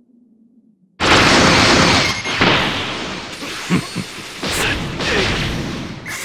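A loud roaring rush of energy bursts in and surges on with crackles.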